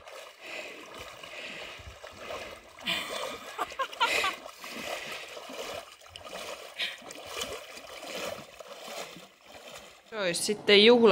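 Water splashes and sloshes as a man wades through a calm lake.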